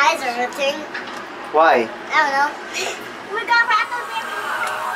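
A young girl giggles and talks close by.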